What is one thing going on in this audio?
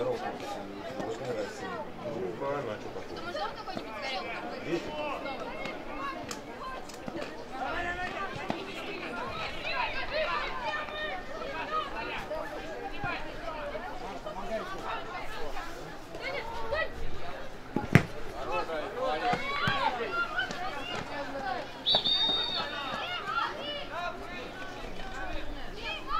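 Young players shout and call to each other across an open field outdoors.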